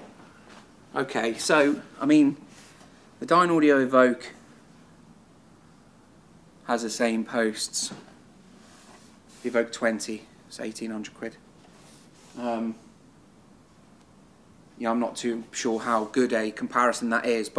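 A man speaks calmly and clearly to the listener, close by in a quiet room.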